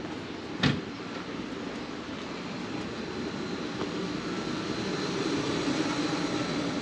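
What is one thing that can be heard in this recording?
Footsteps tap on a brick sidewalk.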